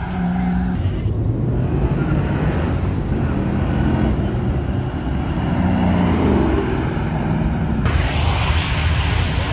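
Tyres hiss on the road as cars pass.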